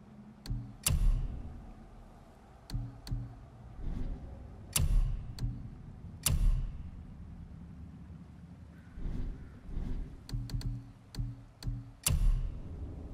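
Menu selection clicks sound in quick succession.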